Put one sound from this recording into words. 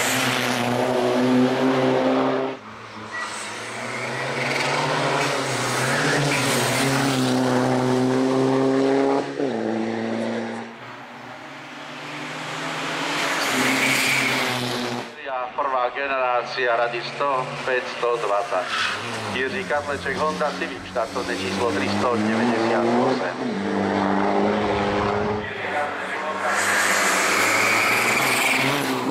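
A rally car engine roars close by, revving up and down through the gears.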